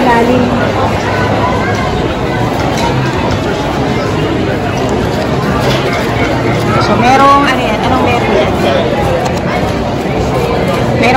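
A crowd chatters in a busy, echoing room.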